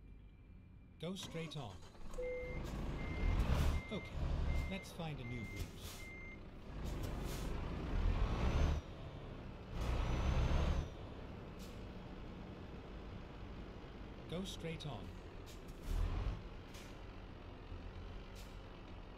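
A truck engine rumbles low and revs up in loud bursts.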